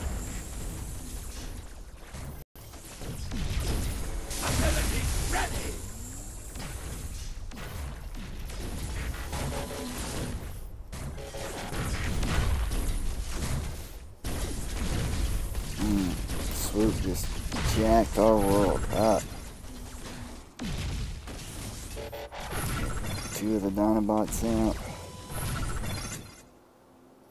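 Laser blasts and explosions crackle in a video game battle.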